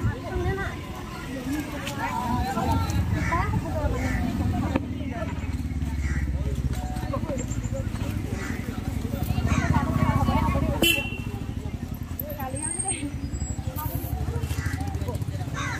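Young women chat and call out nearby.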